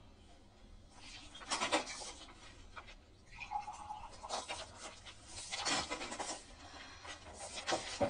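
Paper sheets rustle as they are handled.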